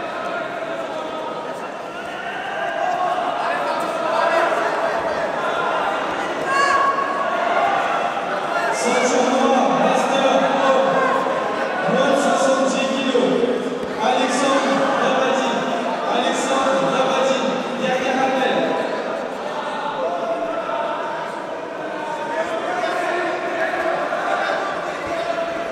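Many men and women talk and shout at once in a large echoing hall.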